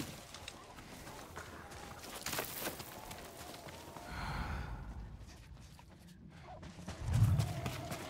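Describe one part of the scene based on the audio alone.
Footsteps crunch quickly through snow.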